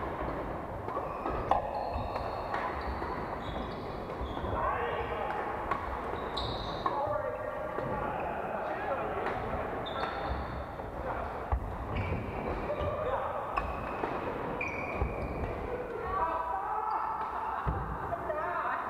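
Rackets strike shuttlecocks with sharp pops in a large echoing hall.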